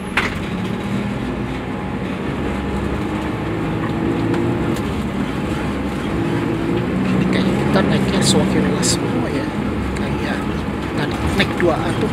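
Men and women talk quietly nearby.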